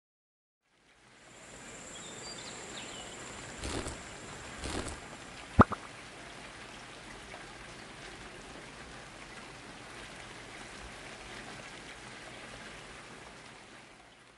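Rain falls steadily and softly.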